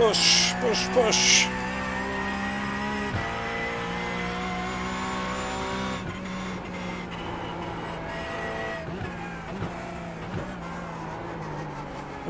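A racing car engine drones steadily, with its pitch dropping at each gear change.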